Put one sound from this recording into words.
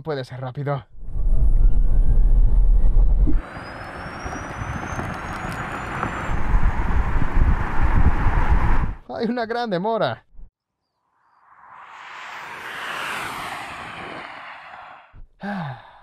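A car speeds past with a rushing whoosh.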